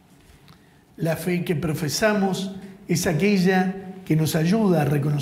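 A man speaks loudly and clearly through a microphone.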